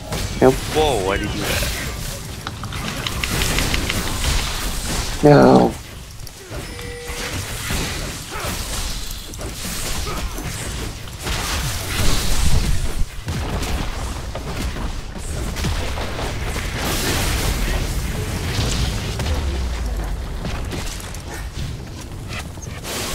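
Game characters clash with sharp hits and impacts.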